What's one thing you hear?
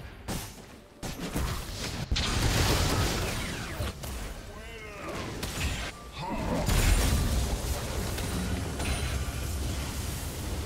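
Magic blasts whoosh and clash in a busy video game fight.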